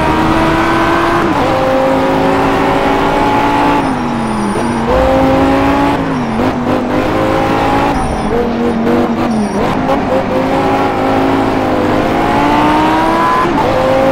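A sports car engine roars, revving up and dropping as gears shift.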